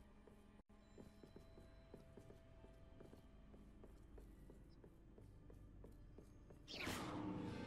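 Footsteps tap softly on a wooden floor.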